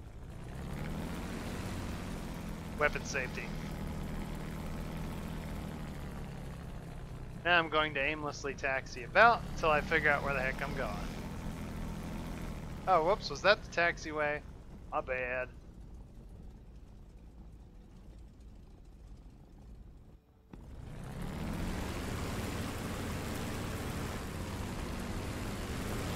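A propeller aircraft engine idles with a steady, low rumble.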